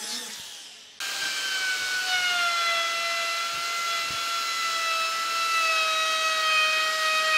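A router motor whirs loudly with a high steady whine.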